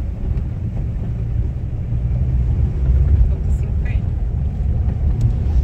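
A car engine rumbles low and steady from inside the cab.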